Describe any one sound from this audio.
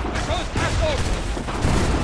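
A musket fires with a sharp crack.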